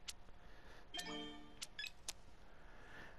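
A short electronic chime sounds as a card is played in a game.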